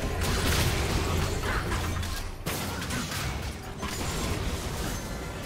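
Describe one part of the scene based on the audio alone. Game spell effects burst and clash in a fight.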